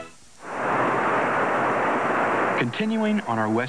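A waterfall roars and rushes steadily.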